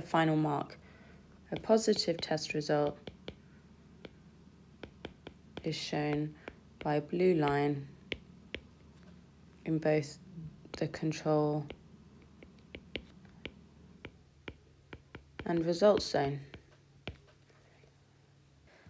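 A stylus taps and scratches lightly on a tablet.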